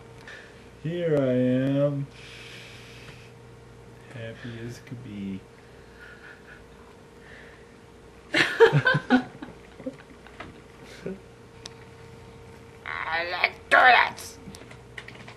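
A young woman speaks playfully, close by.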